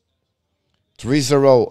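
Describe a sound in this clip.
An older man speaks briefly and loudly into a close microphone.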